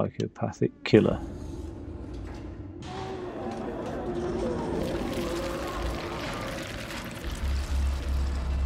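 A large creature creaks and squelches wetly as it writhes.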